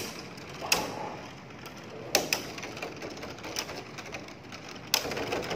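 Spinning tops clash together with sharp clacks.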